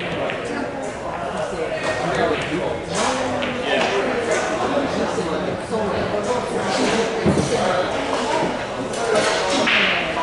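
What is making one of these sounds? Men chatter nearby in a busy room.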